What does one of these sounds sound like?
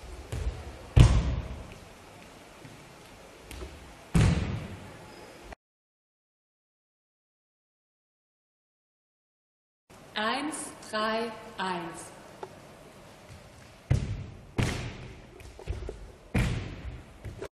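Bare feet land with thuds on a wooden floor after jumps.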